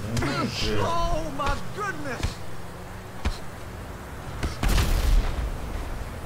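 Punches land with dull thuds.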